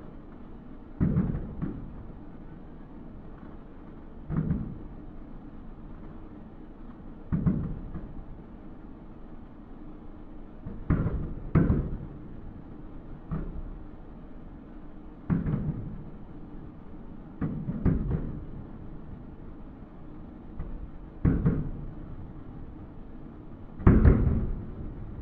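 Fireworks burst with distant booms that echo across open water.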